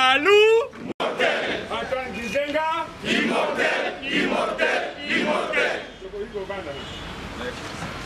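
A crowd of men chants loudly outdoors.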